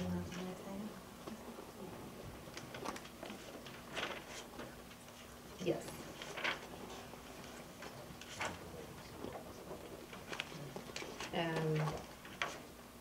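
A woman speaks calmly at a distance.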